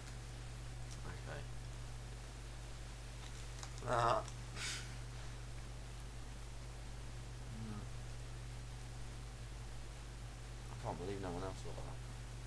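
A young man speaks briefly and quietly close to a microphone.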